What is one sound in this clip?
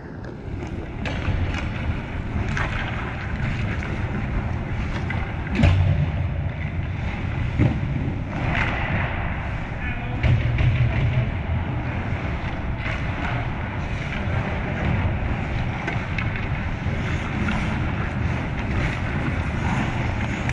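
Goalie skates scrape the ice close by.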